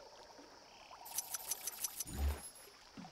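Small coins jingle rapidly as they are counted up.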